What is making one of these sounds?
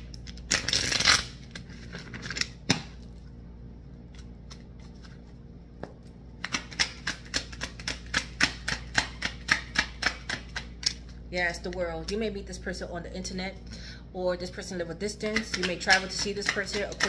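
Playing cards riffle and flutter as they are shuffled by hand.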